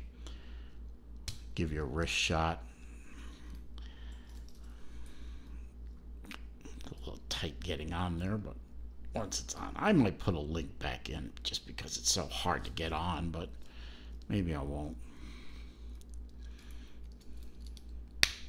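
A metal watch bracelet clicks and rattles as it is handled.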